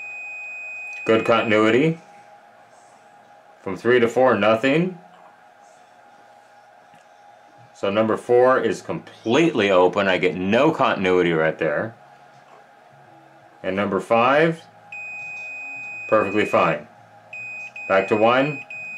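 A meter gives a steady high beep.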